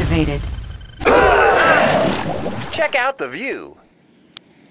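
Laser beams zap in quick bursts.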